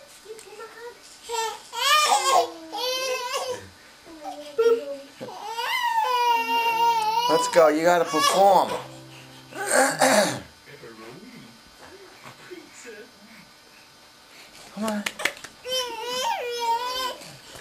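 A woman talks nearby in a high, playful sing-song voice.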